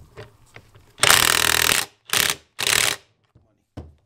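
A power drill whirs in short loud bursts.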